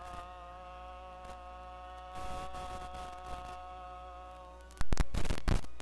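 A group of performers holds a long final sung note in a large hall.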